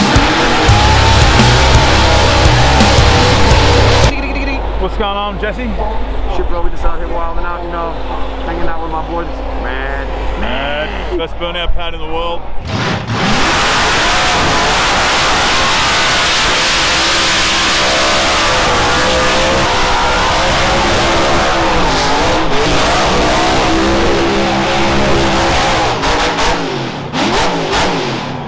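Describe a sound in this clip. A race car engine revs with a deep, loud roar.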